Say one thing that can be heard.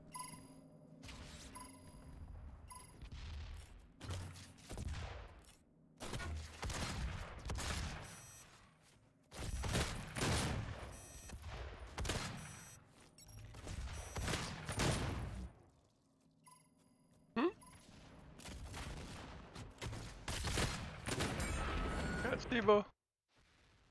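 A shotgun fires loud blasts again and again.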